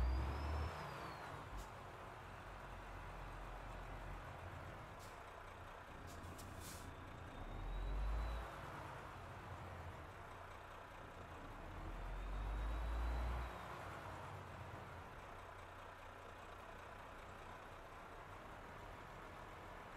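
A heavy truck engine rumbles low and swells now and then.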